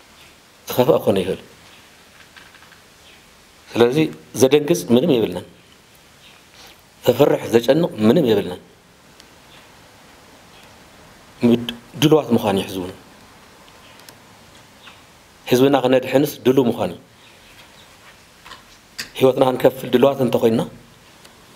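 A middle-aged man speaks calmly into microphones in short bursts with pauses.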